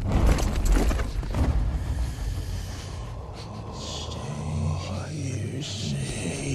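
A man breathes heavily and groans close by.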